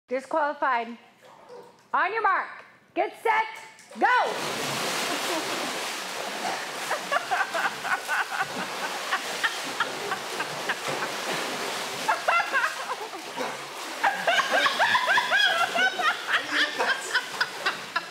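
A young man talks and laughs with animation.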